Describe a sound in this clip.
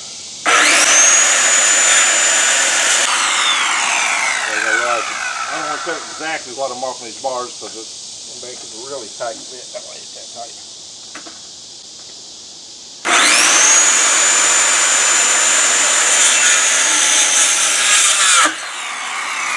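An angle grinder whines loudly as it cuts, then winds down.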